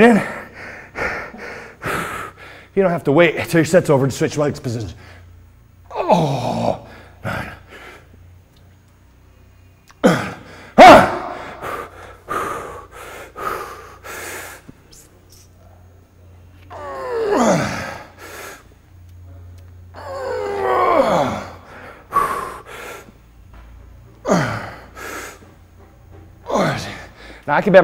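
A middle-aged man talks calmly and clearly into a close microphone.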